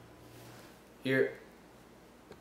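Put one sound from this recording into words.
A second young man speaks briefly with animation.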